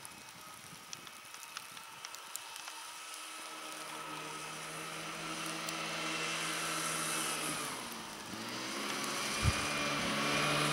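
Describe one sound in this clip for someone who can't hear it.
A snowmobile engine drones, growing louder as it approaches and passes close by.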